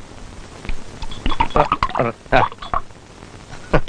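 Glass clinks.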